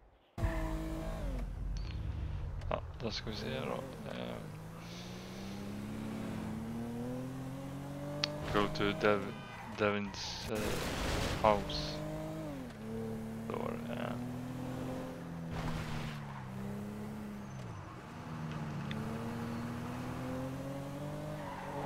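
A car engine revs and roars, rising and falling as it shifts gears.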